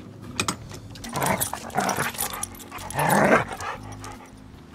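Dogs growl and snarl as they play.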